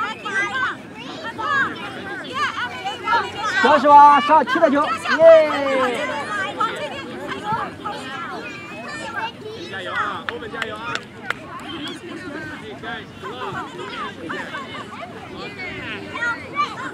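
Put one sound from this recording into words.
Young children shout and chatter outdoors.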